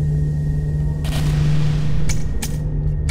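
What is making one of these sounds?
A gadget fires with a sharp crackling whoosh that quickly fades.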